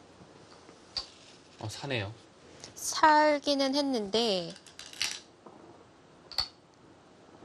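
A stone clicks down onto a wooden board.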